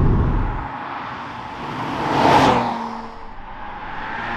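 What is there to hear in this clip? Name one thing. A sports car speeds past close by with a roaring engine and rushing tyres.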